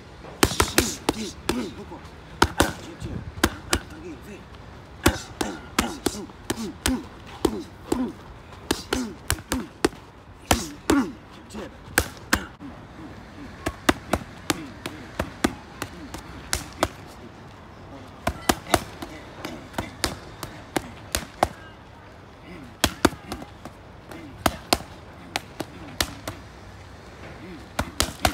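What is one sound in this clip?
Boxing gloves smack sharply against punch pads in quick bursts.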